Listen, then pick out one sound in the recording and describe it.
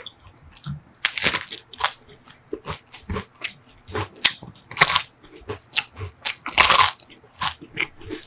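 A crisp wafer cone crunches loudly close up.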